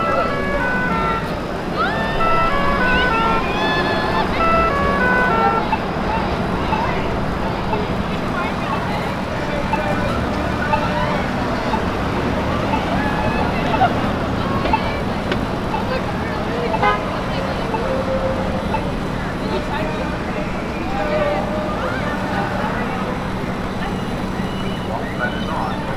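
A crowd of pedestrians murmurs and chatters in the open air.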